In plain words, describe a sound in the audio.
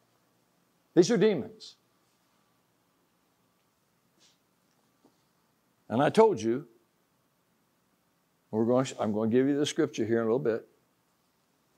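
An elderly man speaks calmly in short bursts with long pauses.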